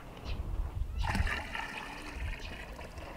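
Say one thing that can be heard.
Water pours out of a bowl and splashes.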